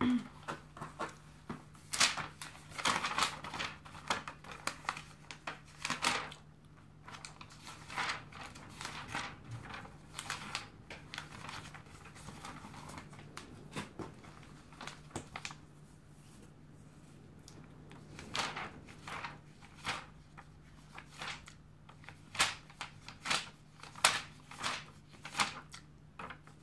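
Magazine pages rustle and flip.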